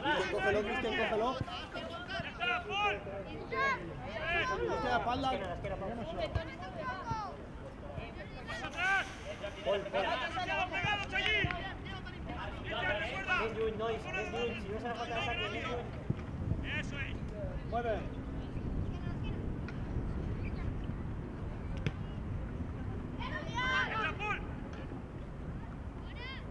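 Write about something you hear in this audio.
Young boys shout and call out to each other across an open outdoor field.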